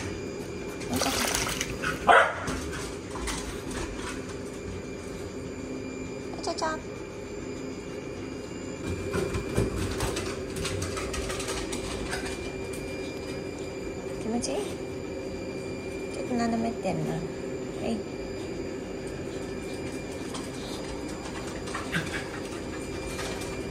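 Water splashes and laps as a dog paddles through a pool.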